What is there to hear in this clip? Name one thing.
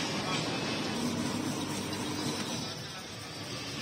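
An ice shaving machine whirs and grinds ice.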